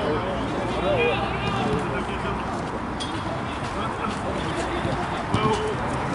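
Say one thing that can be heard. Young men call out to each other across an open outdoor pitch.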